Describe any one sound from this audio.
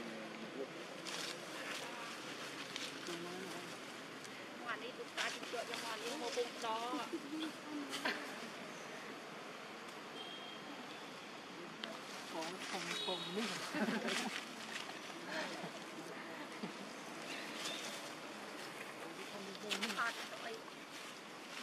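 Dry leaves rustle as monkeys move over the ground.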